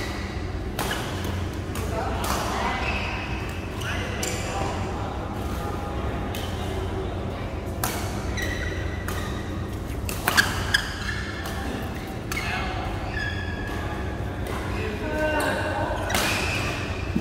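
Voices of young men call out in a large echoing hall.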